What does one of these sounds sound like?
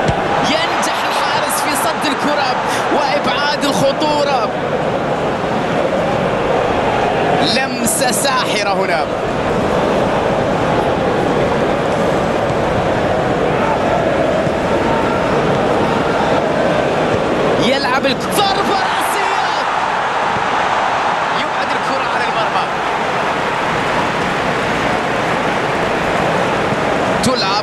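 A large stadium crowd roars and chants steadily throughout.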